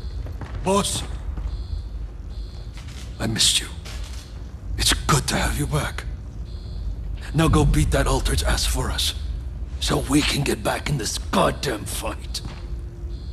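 A middle-aged man speaks in a low, gruff voice.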